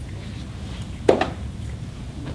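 People clap their hands together once.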